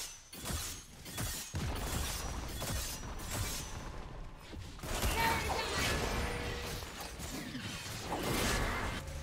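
Magic spells crackle and blast in a fast fight.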